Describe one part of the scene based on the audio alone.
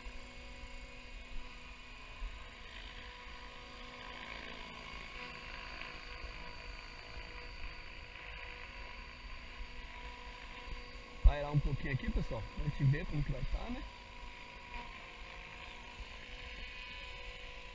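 A small model helicopter's motor whines steadily as it lifts off and flies close by.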